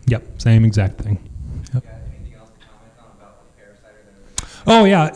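A middle-aged man speaks into a microphone, heard through loudspeakers in an echoing room.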